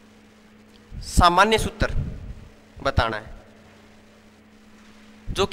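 A young man speaks through a clip-on microphone in a lecturer's tone, in short bursts.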